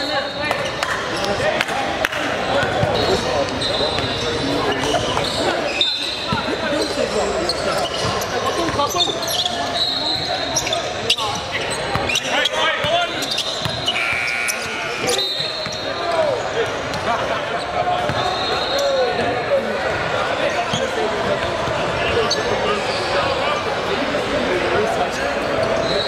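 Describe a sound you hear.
A crowd of young people chatters in a large echoing gym.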